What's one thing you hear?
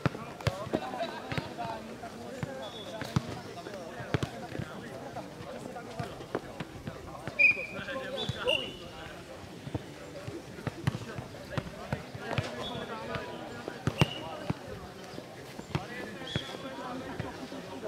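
Tennis balls are struck with rackets in quick exchanges, outdoors.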